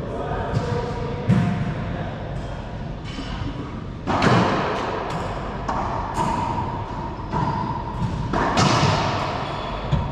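Rackets strike a ball with sharp cracks.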